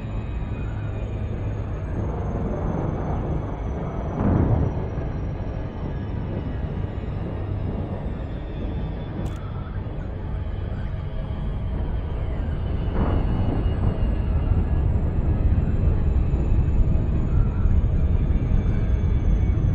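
A spaceship's engines rumble with a deep, steady hum that grows louder.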